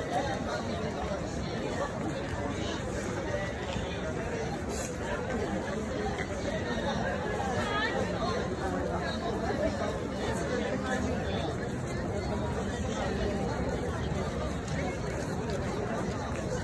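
A large outdoor crowd of men, women and children chatters all around.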